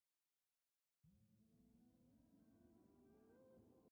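Soft, calm game music plays.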